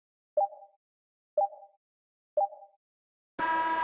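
A game clock beeps three times in a short countdown.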